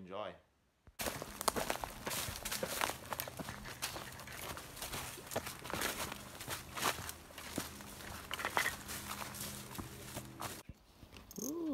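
Footsteps crunch through leaves and undergrowth.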